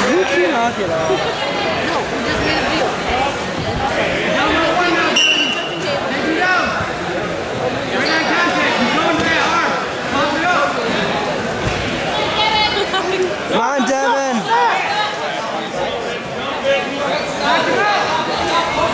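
A crowd of spectators shouts and cheers throughout in a large echoing gym.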